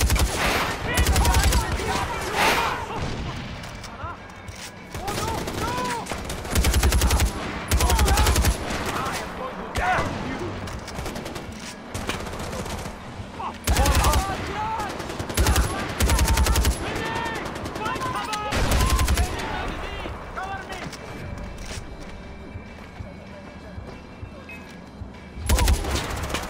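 Rapid gunfire bursts out in short, loud volleys.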